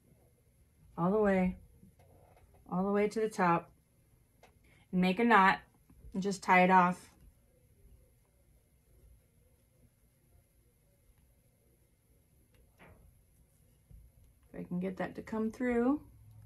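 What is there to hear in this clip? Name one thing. A woman talks calmly and close by, in short bursts.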